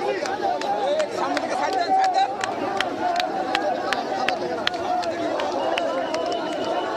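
A large crowd of men shouts and clamours close by.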